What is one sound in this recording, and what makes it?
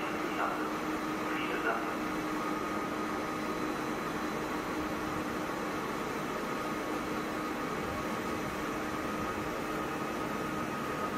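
A train rolls slowly in with a steady rumble and hum.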